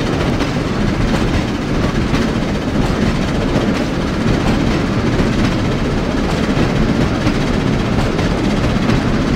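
A steam locomotive chuffs steadily as it climbs.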